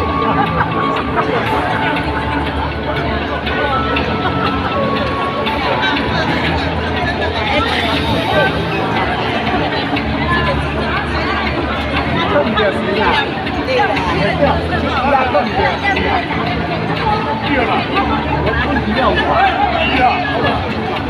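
A middle-aged woman sings through a microphone and loudspeaker in an echoing hall.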